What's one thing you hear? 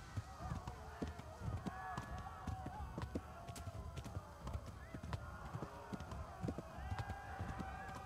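A horse's hooves thud on a dirt path.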